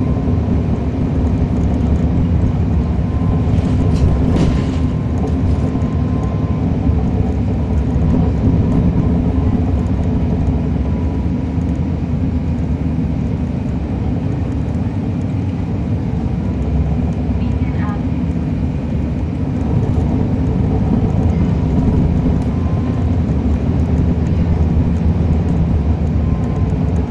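A diesel transit bus engine drones, heard from on board.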